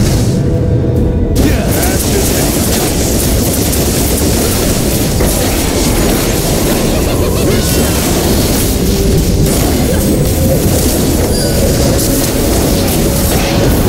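Game spell effects crackle and whoosh during a fight.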